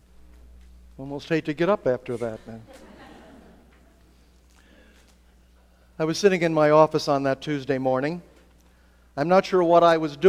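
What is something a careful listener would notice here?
A man speaks slowly through a microphone in a large echoing hall, with pauses between phrases.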